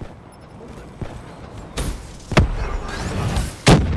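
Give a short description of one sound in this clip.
An explosion booms.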